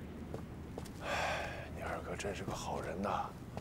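A young man speaks with a questioning tone, close by.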